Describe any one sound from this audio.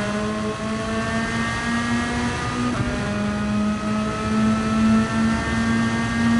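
A racing car engine roars loudly, its pitch climbing steadily.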